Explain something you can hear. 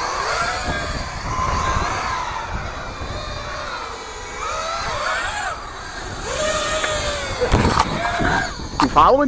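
A small electric motor whines, rising and falling in pitch as a remote-control toy car speeds about.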